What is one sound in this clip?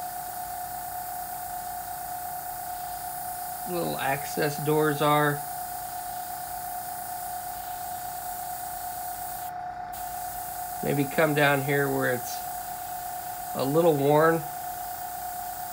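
An airbrush hisses steadily.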